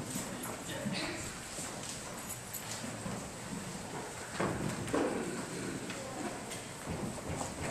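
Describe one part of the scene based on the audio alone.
A man speaks calmly through a loudspeaker in a large echoing hall.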